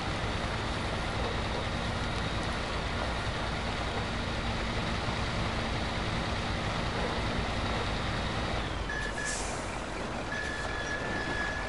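A heavy truck engine rumbles steadily as the truck drives along a rough track.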